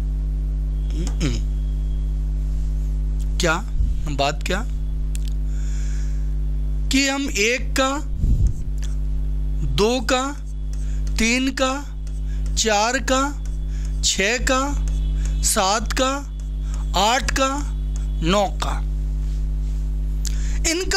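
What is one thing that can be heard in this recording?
A man speaks steadily through a headset microphone, in short bursts with pauses.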